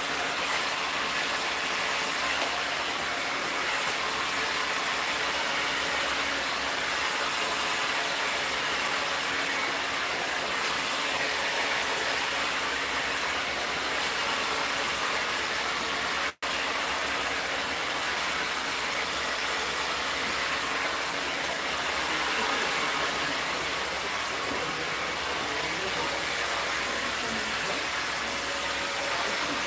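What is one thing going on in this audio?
A hair dryer blows with a steady roaring whoosh close by.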